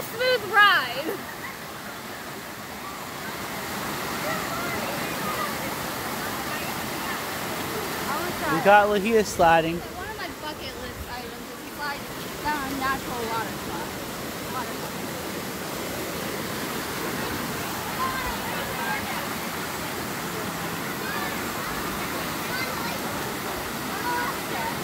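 A stream rushes steadily over rocks outdoors.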